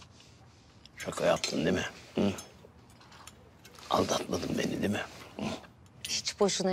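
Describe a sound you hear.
A man speaks calmly and with amusement, close by.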